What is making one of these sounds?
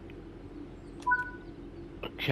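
A door button beeps briefly.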